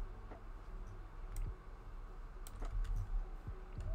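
A wooden chest lid creaks shut.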